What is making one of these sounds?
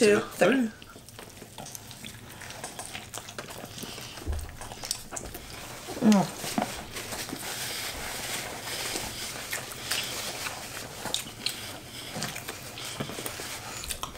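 A man and a woman chew food with soft, wet smacking sounds.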